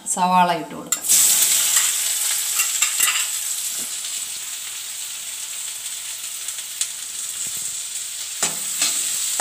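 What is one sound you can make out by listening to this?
Onions sizzle loudly in hot oil.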